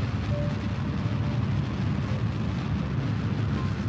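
A rocket engine roars with a steady low rumble.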